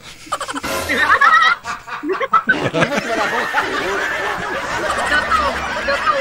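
A middle-aged man laughs loudly into a microphone.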